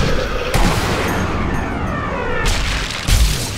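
A bullet whooshes slowly through the air.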